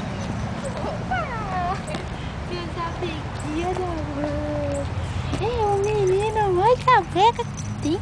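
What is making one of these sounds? A young woman talks to a dog in a high, cooing voice close by.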